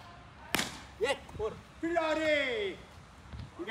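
A young boy shouts excitedly nearby.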